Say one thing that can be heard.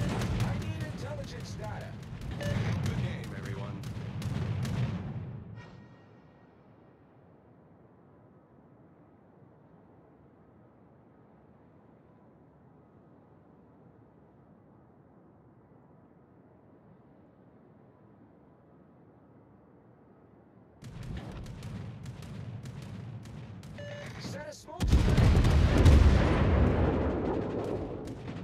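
Heavy naval guns fire in loud, booming salvos.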